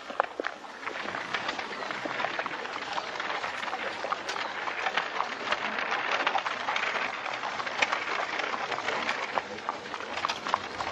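Carriage wheels rattle and creak on a dirt track.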